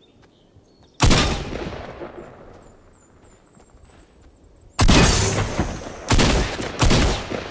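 A pickaxe strikes a metal truck with loud clanging blows.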